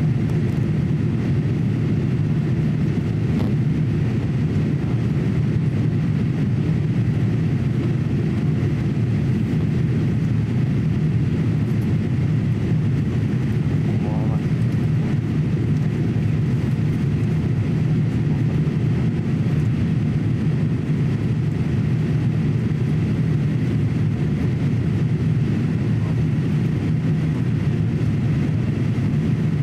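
A jet airliner's engines roar steadily from inside the cabin.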